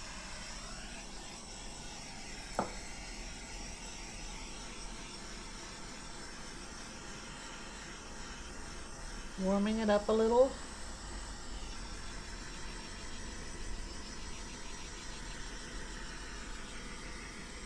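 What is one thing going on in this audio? A small gas torch hisses steadily.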